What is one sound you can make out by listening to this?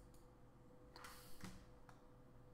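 A rifle scope clicks as it zooms in.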